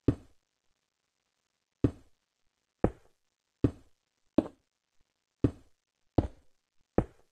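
Short, dull thuds of a game character in water repeat at an uneven pace.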